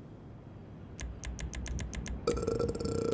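Short electronic clicks tick in quick succession.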